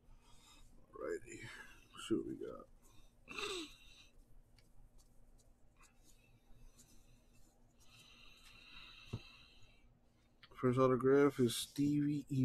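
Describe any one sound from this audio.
Trading cards rustle and slide as they are shuffled by hand.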